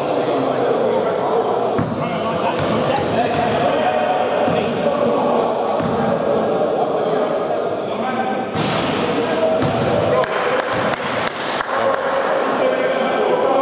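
Young men call out to each other in an echoing hall.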